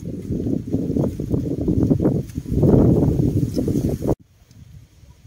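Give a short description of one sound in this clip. Bamboo stakes rustle and knock close by.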